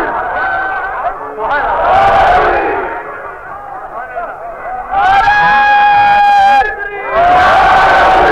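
An elderly man recites in a melodic, sustained voice through a microphone.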